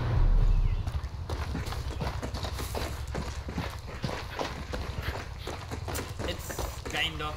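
Footsteps crunch steadily on rough forest ground.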